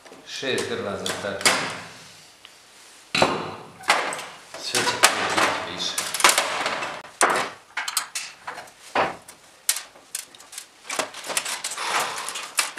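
Hands remove plastic lamp holders, which click and clatter on a sheet-metal panel.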